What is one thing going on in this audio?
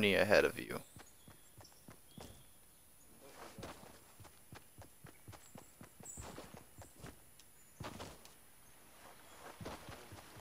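Footsteps patter quickly on grass.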